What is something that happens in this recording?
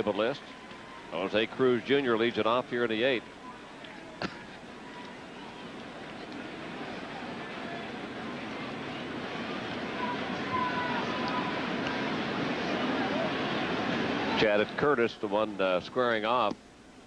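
A stadium crowd murmurs and cheers in the distance.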